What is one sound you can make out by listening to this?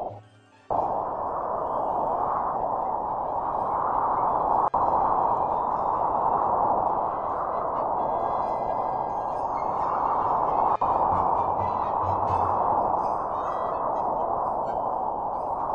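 A snowboard hisses steadily across snow.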